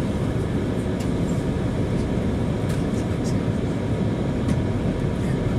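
Train wheels click and clatter on the rails.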